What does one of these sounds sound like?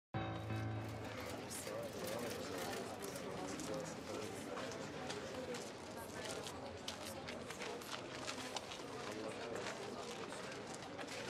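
A crowd of men and women murmurs and chatters nearby.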